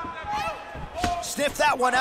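A kick lands with a thud on a body.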